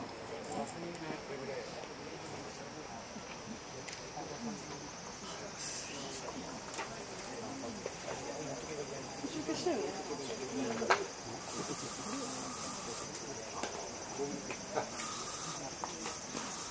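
Several teenage boys talk and call out to each other outdoors at a distance.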